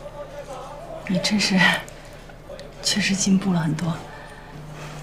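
A young woman speaks warmly and calmly.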